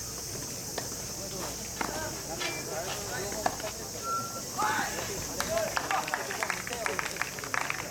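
Young men talk and call out at a distance outdoors.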